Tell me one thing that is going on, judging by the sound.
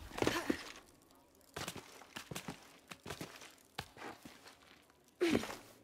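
Hands and boots scrape on rough stone while climbing.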